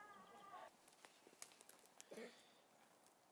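Footsteps crunch on dry forest ground.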